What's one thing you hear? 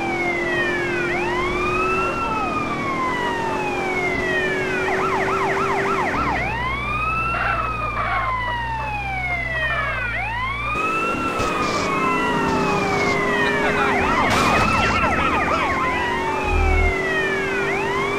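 A car engine roars steadily.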